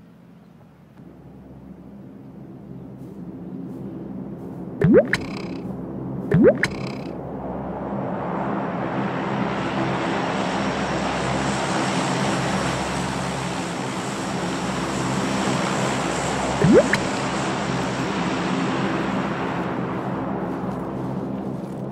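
A vehicle engine drones steadily in the distance.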